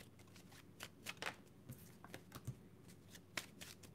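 A card is set down on a wooden table with a soft tap.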